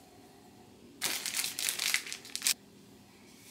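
Cloth rustles close by.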